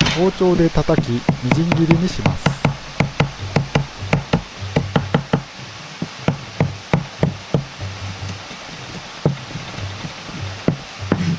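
A knife chops rapidly on a cutting board.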